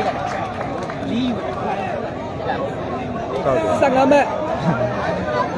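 A large outdoor crowd chatters and calls out all around.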